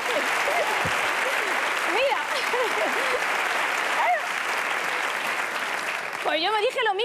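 A large audience applauds and cheers loudly in an echoing hall.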